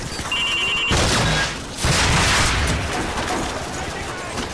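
A missile explodes with a loud, rumbling boom.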